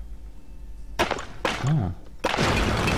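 A heavy blow smashes through a brick wall.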